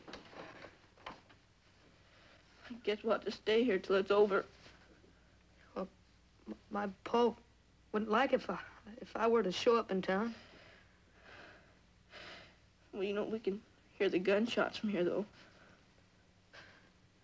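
A second young boy answers softly, close by.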